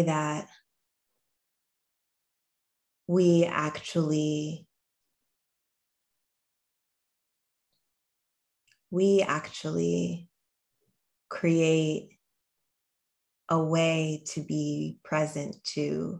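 A young woman talks calmly and closely into a microphone, with pauses.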